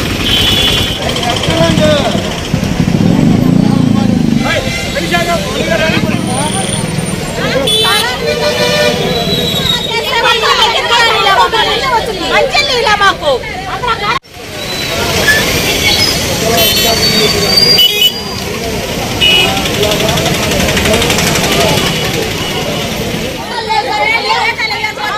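A crowd of men and women talk and shout at once, outdoors.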